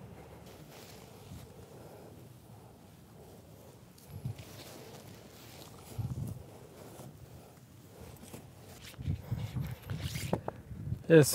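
A plastic sack rustles as it is handled.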